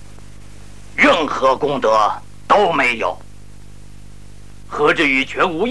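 Another man answers calmly.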